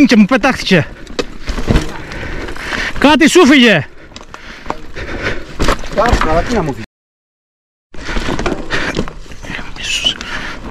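Bicycle tyres crunch and rattle over rocky gravel.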